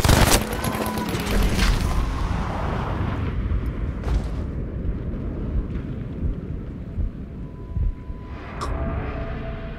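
Rifle shots crack sharply now and then.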